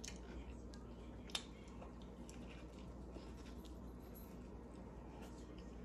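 A young woman bites into a burger close to a microphone.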